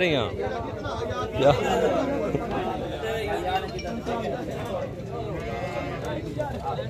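Goats bleat close by.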